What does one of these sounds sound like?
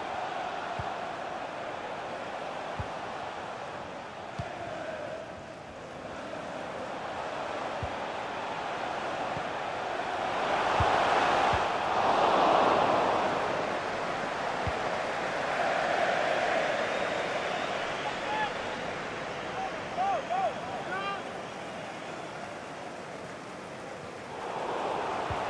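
A large stadium crowd roars and chants steadily, swelling loudly at times.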